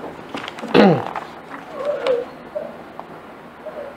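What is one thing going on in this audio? Paper rustles as a man handles sheets.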